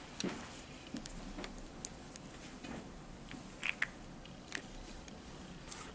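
Small plastic pieces click and tap lightly as they are handled.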